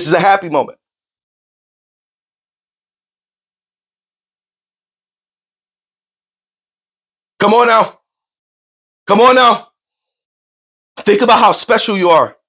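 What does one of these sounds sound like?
A man speaks loudly and forcefully into a close microphone, in short bursts.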